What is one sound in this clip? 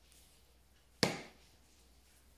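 A small tin knocks down onto a wooden table.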